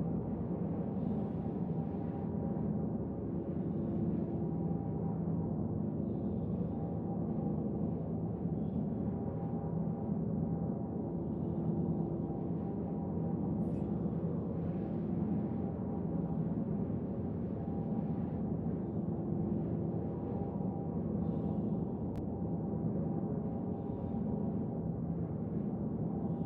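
A deep engine drone hums steadily.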